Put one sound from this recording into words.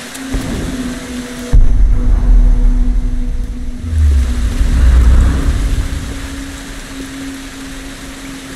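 A torch flame crackles and roars softly.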